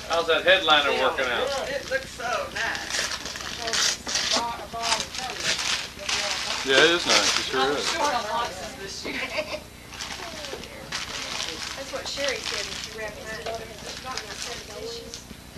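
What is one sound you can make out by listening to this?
Several adults talk and laugh casually nearby.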